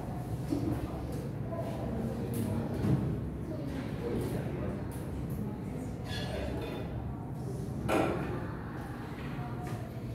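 A young man speaks calmly to a room.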